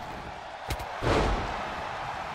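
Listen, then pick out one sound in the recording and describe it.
A wrestler's body slams hard onto the ring mat with a heavy thud.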